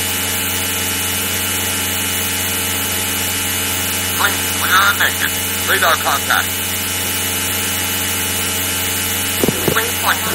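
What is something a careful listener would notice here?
A fighter jet engine drones steadily.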